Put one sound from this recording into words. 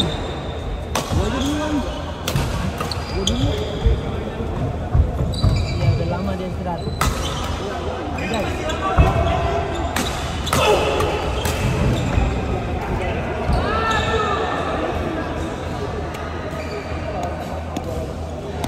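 Sports shoes squeak sharply on a wooden court.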